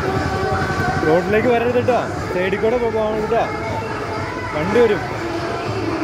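A young girl speaks excitedly close by.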